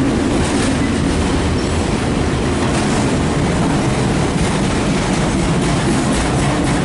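A freight train rumbles loudly past close by.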